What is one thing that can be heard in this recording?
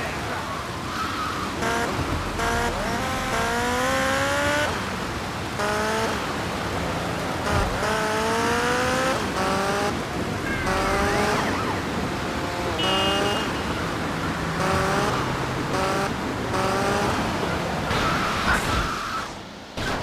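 A motorbike engine revs up and down repeatedly as gears shift.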